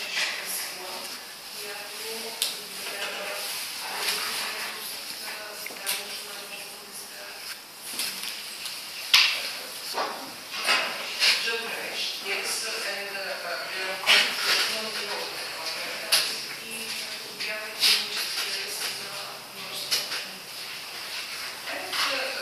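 A woman speaks steadily from across a large room, with some echo.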